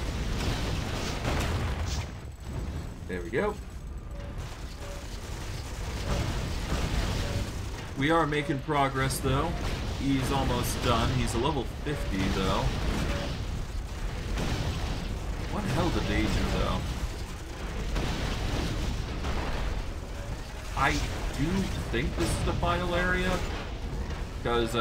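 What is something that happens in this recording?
Magic blasts and fiery bursts crackle in a battle.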